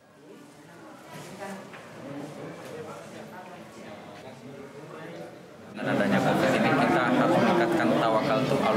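A middle-aged man speaks steadily into microphones, first a little distant and then close and loud.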